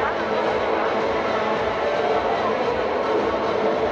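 Young women shout and cheer in a large echoing hall.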